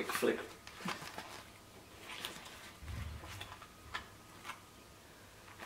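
Book pages flip and rustle quickly.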